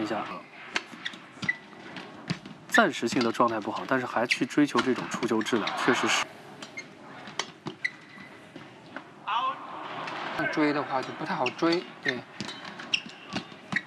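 Rackets strike a shuttlecock with sharp pops in a rally.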